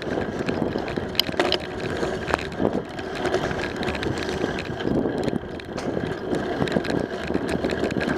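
Tyres roll and rattle over pavement.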